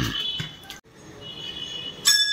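A bell rings with a clear metallic tone.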